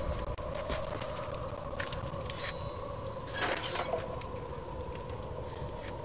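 Footsteps tread on wooden planks.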